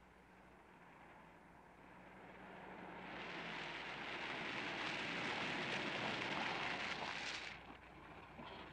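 A car drives closer and passes by.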